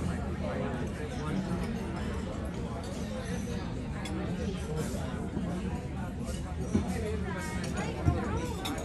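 A crowd of men and women chatter all around in a large, busy room.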